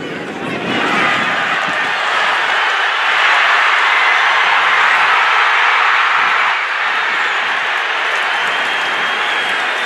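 A large stadium crowd roars and cheers, swelling loudly and then easing.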